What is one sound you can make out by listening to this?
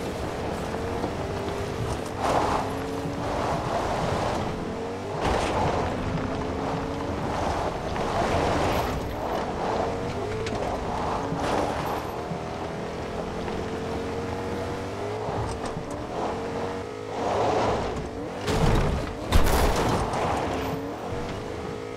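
A truck engine hums and rises in pitch as it drives.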